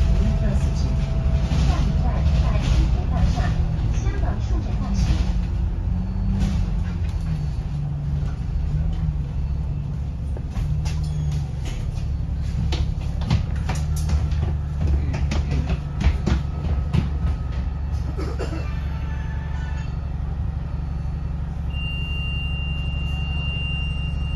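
A bus rattles and clatters over bumps.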